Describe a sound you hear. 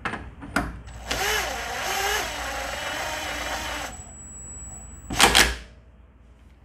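An impact wrench whirs and rattles loudly, driving a nut tight.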